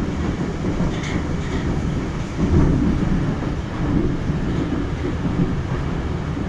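The train's wheels clatter and knock on the rails.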